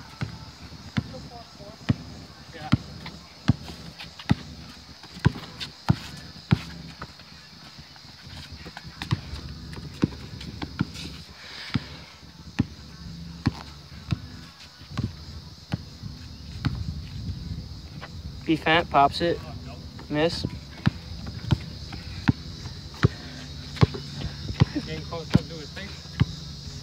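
A basketball bounces repeatedly on a hard outdoor court.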